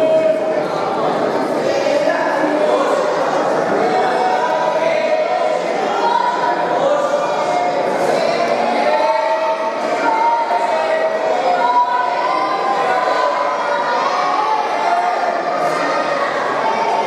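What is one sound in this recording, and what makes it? A crowd of people chatters loudly, echoing in a large hall.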